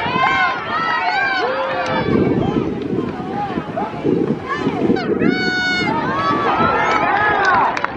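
A crowd cheers in an open-air stadium.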